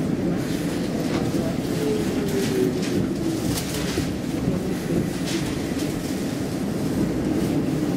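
A bus rolls along and then comes to a stop.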